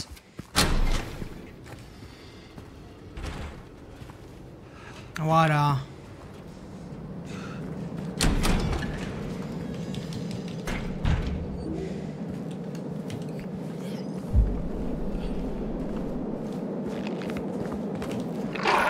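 Footsteps walk steadily on a hard floor.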